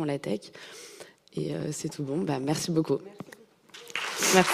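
A young woman speaks calmly through a microphone.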